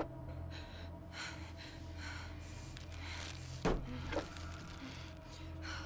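Packages rustle and clatter on a shelf.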